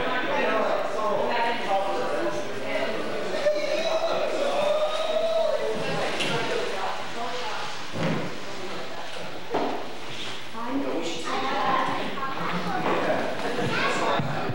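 Young women sing together into microphones over a loudspeaker in an echoing hall.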